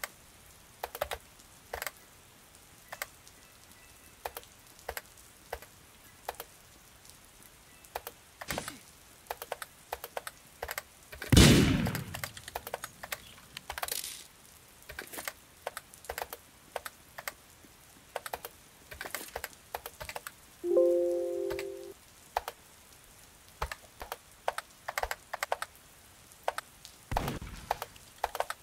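Quick light footsteps tap on a wooden floor.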